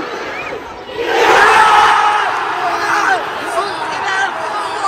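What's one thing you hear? A huge crowd roars and cheers close by.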